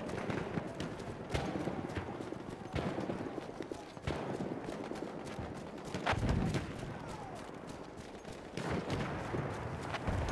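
Footsteps crunch steadily on dirt and gravel.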